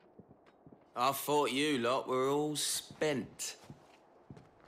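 A man speaks sharply through a helmet.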